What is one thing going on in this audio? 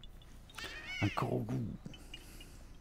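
A small creature squeals in a high, squeaky voice.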